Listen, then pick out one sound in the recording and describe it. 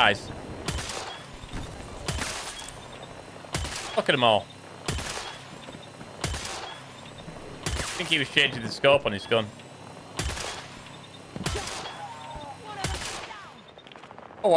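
Rifle shots crack sharply at intervals.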